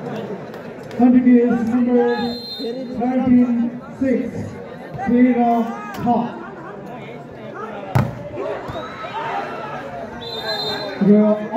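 Young men shout to each other on the court.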